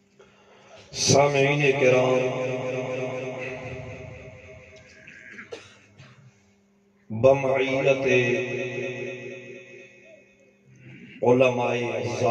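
A man chants melodically into a microphone, heard through loudspeakers in long sustained phrases.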